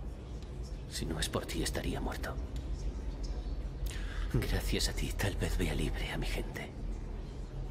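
A young man speaks softly and earnestly, close by.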